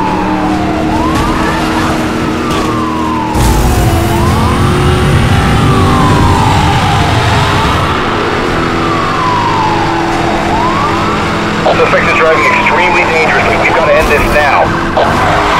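A police siren wails close behind.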